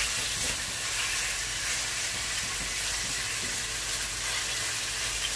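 Meat sizzles loudly in a hot pan.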